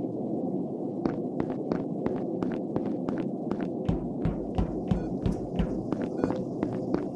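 Quick light footsteps patter as a game character walks.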